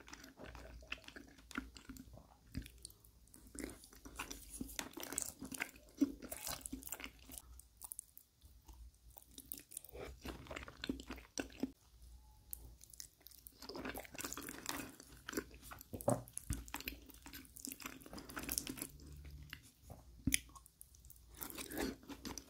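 A man chews food wetly and noisily close to a microphone.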